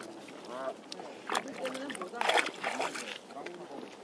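A dog splashes as it steps into shallow water.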